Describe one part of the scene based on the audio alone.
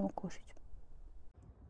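A young woman speaks briefly and close to a microphone.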